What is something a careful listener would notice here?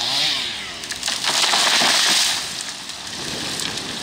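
A large tree crashes down to the ground.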